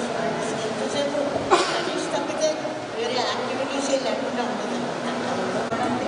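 An elderly woman speaks calmly and warmly, close by.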